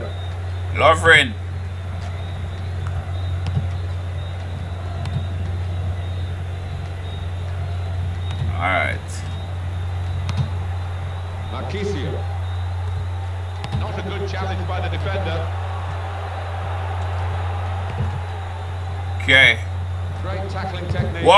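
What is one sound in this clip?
A stadium crowd roars steadily.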